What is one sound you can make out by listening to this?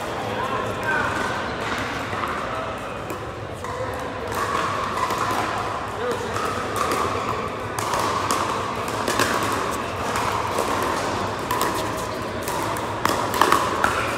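Paddles pop against plastic balls in sharp hits, with echoes around a large indoor hall.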